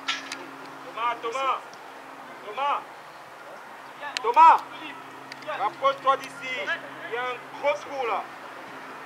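Young players shout across an open field.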